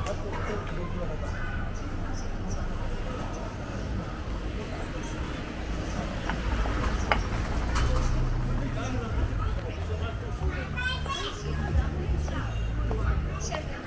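Traffic and street bustle hum steadily outdoors.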